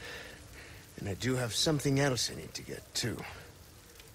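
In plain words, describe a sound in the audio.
A man speaks quietly and tensely, close by.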